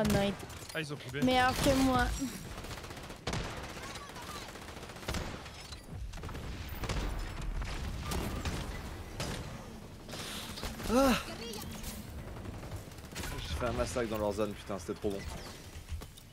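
Gunfire from a video game crackles in quick bursts.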